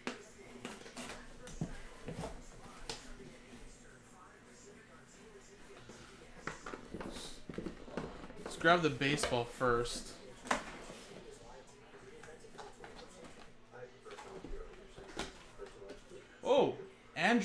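Cardboard packaging rustles and scrapes as hands open a box.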